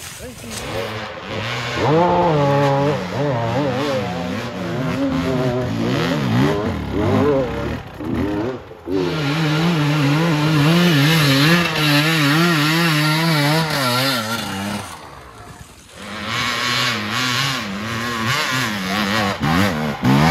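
Knobby tyres spin and spray dirt and leaves.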